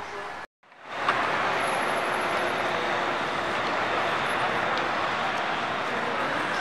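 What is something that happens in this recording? Cars drive past on a busy street.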